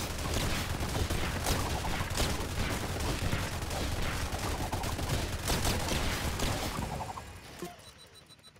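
Video game explosions boom and crackle in quick succession.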